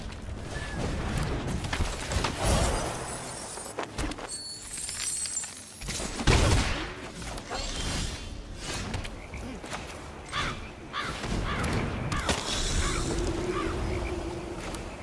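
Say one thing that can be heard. Magical game effects whoosh and crackle.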